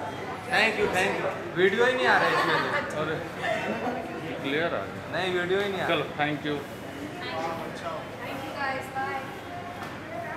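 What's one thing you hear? Young women talk and laugh cheerfully nearby.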